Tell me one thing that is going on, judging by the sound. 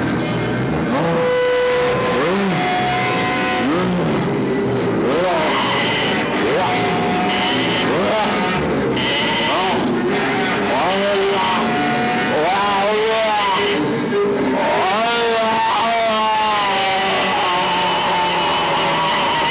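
Warbling electronic tones swoop and glide through an amplifier.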